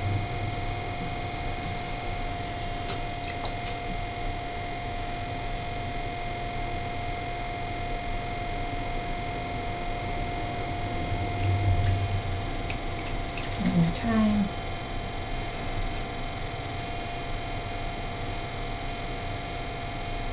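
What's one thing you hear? A potter's wheel motor hums steadily.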